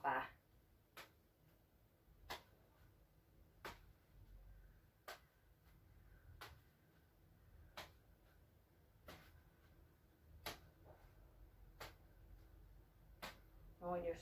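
Balls slap softly into a woman's hands as she juggles.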